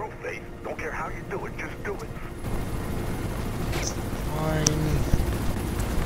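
A helicopter's rotor thuds steadily and grows louder.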